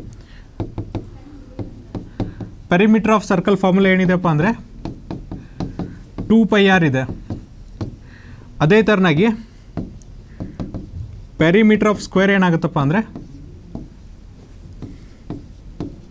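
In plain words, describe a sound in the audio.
A marker taps and scrapes on a board.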